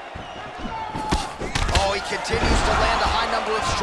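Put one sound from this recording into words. A body thumps down onto a mat.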